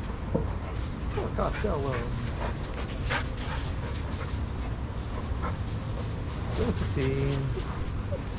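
Dogs whine and yelp playfully.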